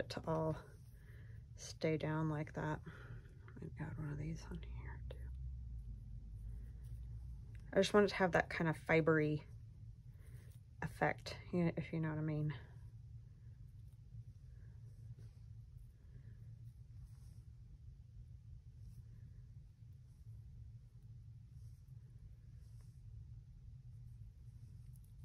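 Paper rustles softly under handling.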